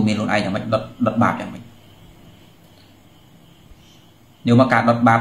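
A man speaks calmly and close to the microphone, pausing briefly.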